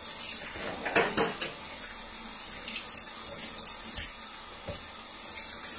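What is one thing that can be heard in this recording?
Dishes clink against the sink now and then.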